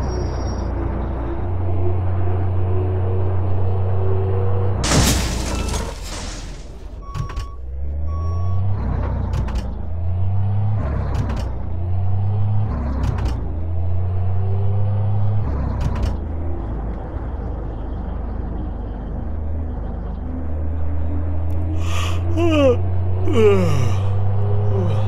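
A truck engine drones steadily, rising in pitch and dropping as the gears shift.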